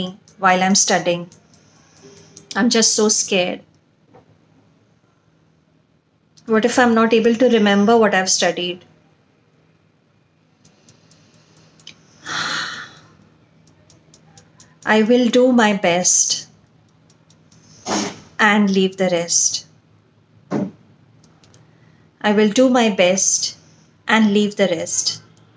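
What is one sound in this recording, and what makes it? A woman speaks calmly and clearly into a nearby microphone, pausing between phrases.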